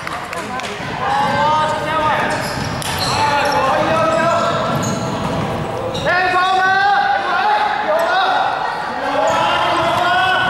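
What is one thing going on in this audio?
Young women nearby shout and cheer loudly.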